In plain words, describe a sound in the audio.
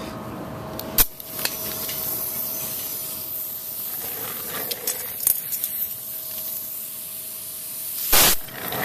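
Metal parts click as a man handles a valve fitting.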